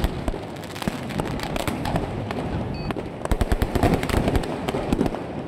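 Fireworks crackle and bang in the open air.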